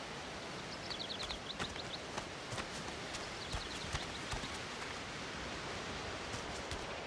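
Footsteps tread softly through grass.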